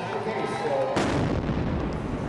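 A loud explosion booms sharply.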